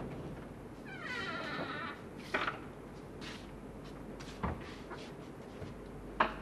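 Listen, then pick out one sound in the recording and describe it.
A wooden door creaks and knocks as it opens.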